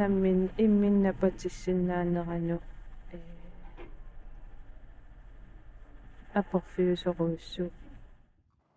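A woman speaks calmly and close by, through a clip-on microphone.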